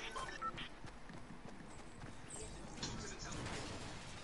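Footsteps patter on hard ground.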